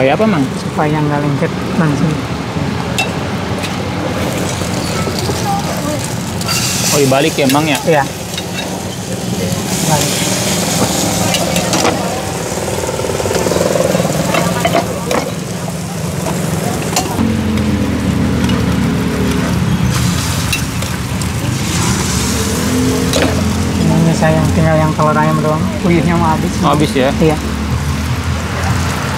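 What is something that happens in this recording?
Batter sizzles on a hot griddle.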